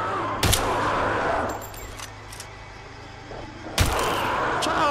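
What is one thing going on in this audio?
A pistol fires loud shots.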